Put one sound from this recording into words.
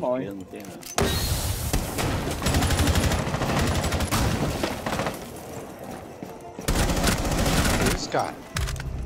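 A rifle fires in rapid bursts close by.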